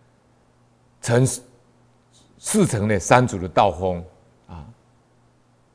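A middle-aged man speaks calmly and closely into a microphone, in short phrases.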